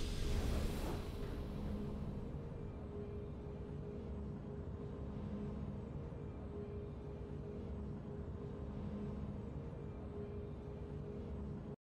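Soft game music plays on quietly.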